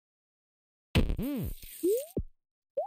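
A burst of electronic whooshing noise sounds as a game level restarts.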